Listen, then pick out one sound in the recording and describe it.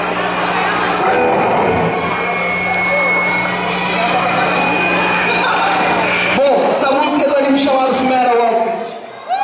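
A rock band plays loud electric guitars through amplifiers.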